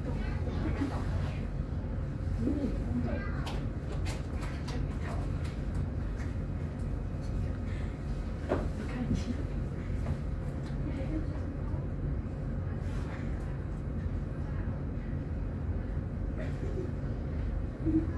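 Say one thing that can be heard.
Traffic rumbles steadily on a city street.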